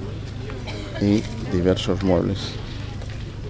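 An elderly man speaks nearby.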